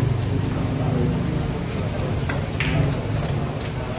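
A cue stick strikes a pool ball.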